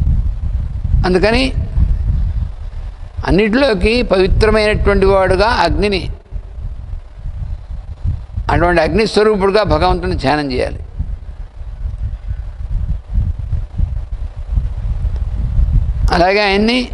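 An elderly man chants slowly into a microphone, with long pauses between phrases.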